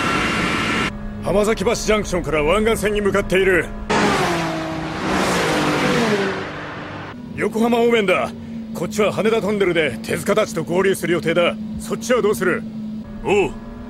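A man speaks urgently into a phone.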